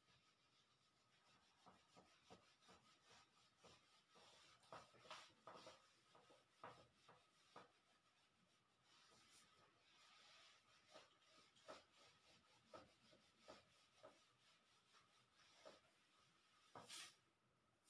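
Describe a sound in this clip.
A duster rubs and squeaks across a whiteboard.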